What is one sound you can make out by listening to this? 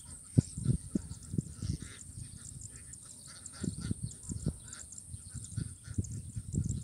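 A flock of ducks quacks in the distance.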